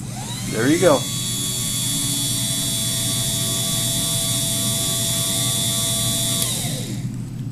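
An electric motor whirs steadily with a high whine.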